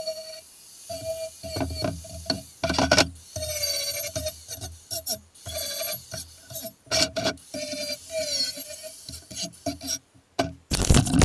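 An angle grinder whines and grinds against metal in short bursts.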